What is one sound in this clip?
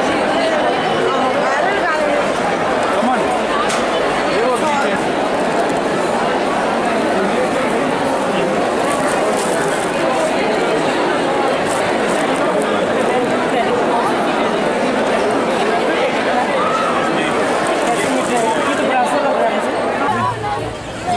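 A crowd of people chatter all around indoors.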